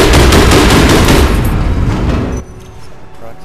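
An explosion roars and rumbles.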